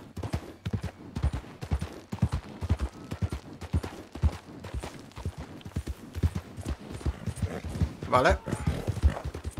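Horse hooves thud steadily on dirt at a trot.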